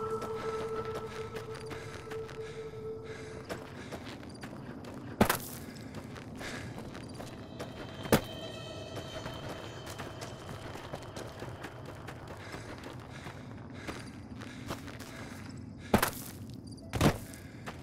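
Footsteps crunch over gravel and dirt.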